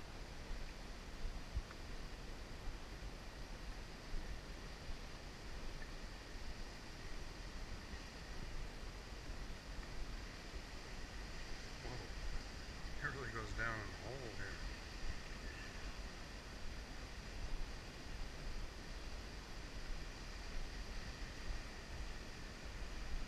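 A waterfall roars steadily in the distance.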